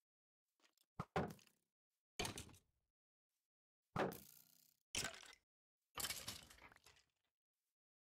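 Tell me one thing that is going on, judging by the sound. Loud hits and clatters of a fight with a skeleton ring out in a game.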